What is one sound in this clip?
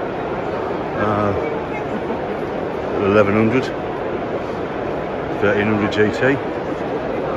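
A man talks nearby in short bursts.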